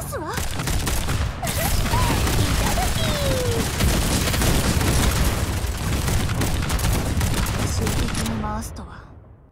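Explosions and gunfire boom and crackle loudly in a busy battle.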